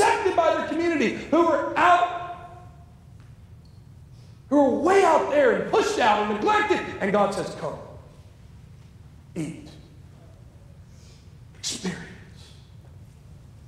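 A man preaches with passion through a microphone in an echoing hall.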